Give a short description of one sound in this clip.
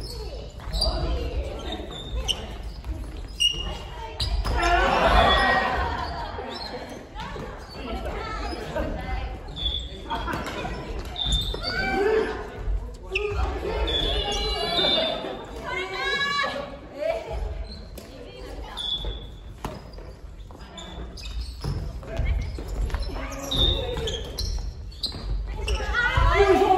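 Shoes squeak and thud on a wooden floor.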